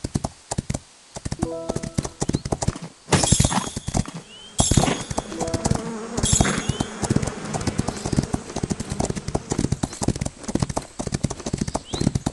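Horse hooves pound rhythmically on a dirt track.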